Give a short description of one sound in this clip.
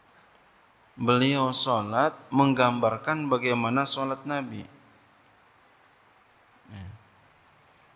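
A man speaks with animation into a microphone, heard close up.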